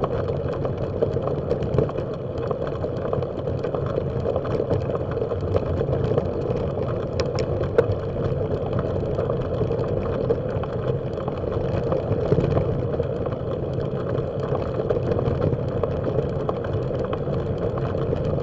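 Tyres roll and crunch steadily over a gravel road.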